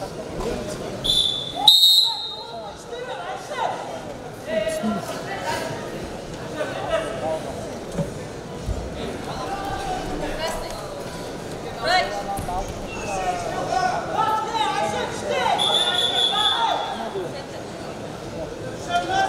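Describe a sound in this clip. A large crowd cheers and shouts throughout a big echoing hall.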